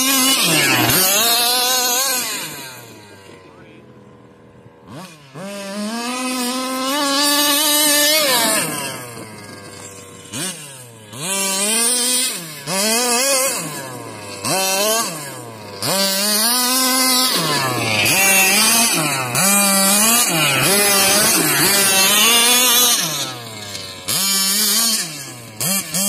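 Tyres scrape and skid over dry grass and dirt.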